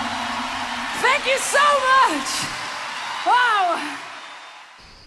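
A woman sings powerfully over the music.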